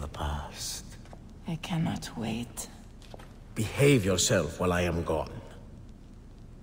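A man speaks softly and closely.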